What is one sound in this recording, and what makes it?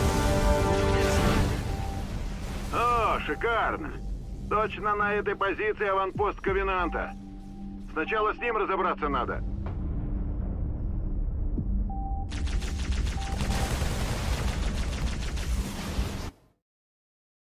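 Gunfire crackles and rattles in a battle.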